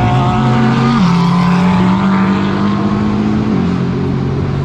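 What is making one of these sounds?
A racing engine shifts gears with sudden jumps in pitch.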